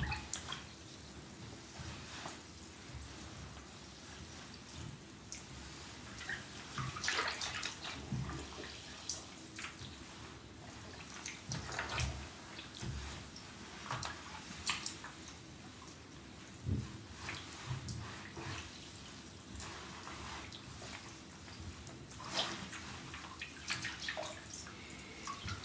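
Water sloshes and splashes as boots tread in a bathtub.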